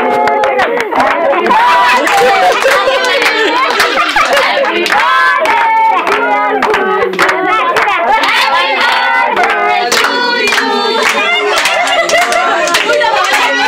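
People clap their hands in rhythm.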